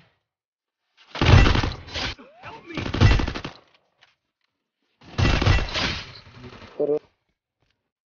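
Gunshots fire in loud, rapid bursts.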